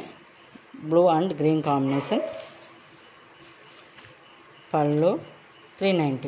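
Fabric rustles softly under a hand.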